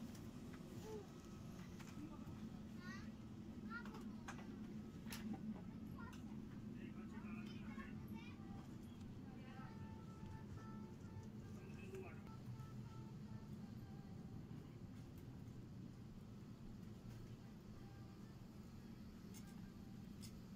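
An aircraft cabin hums with a steady low drone.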